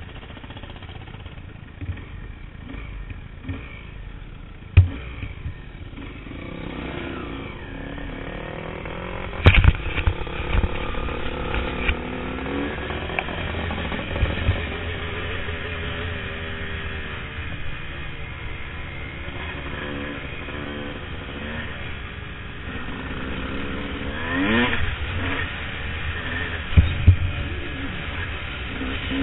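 A dirt bike engine revs and roars up close.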